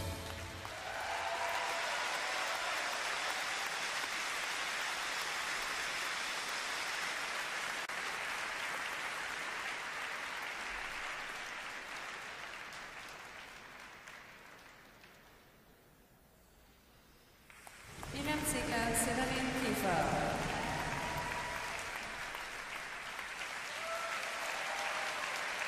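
A large crowd applauds and cheers in a big echoing arena.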